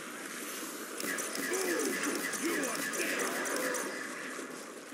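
An energy gun fires with buzzing blasts.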